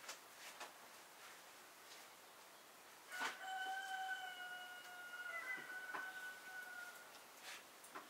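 A sheet of dough rustles as it is lifted and laid down.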